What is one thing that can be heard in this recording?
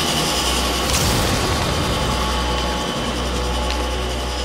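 Wind rushes past a gliding cape.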